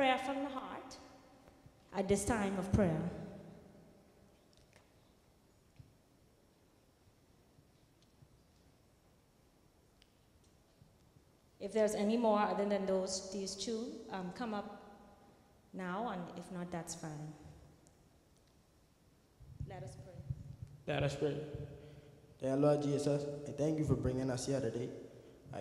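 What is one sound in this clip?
A woman sings into a microphone in a large echoing hall, pausing between phrases.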